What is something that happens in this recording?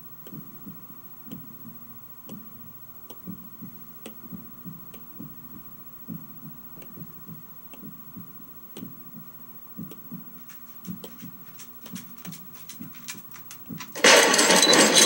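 A stylus taps lightly on a glass touchscreen.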